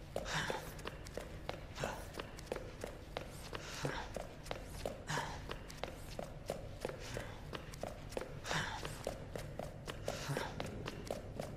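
Footsteps thud quickly and evenly on a wooden floor.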